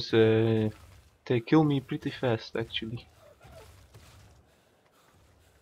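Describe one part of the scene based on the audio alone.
Footsteps patter softly on sand.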